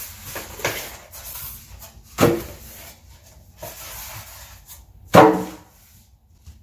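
Styrofoam packing squeaks and scrapes as it is pulled off.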